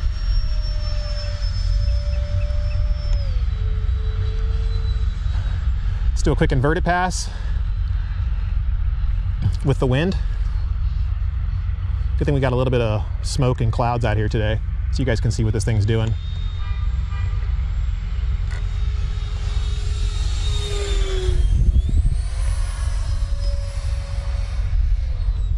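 A model jet's turbine whines steadily overhead, shifting in pitch and roaring louder as it passes close.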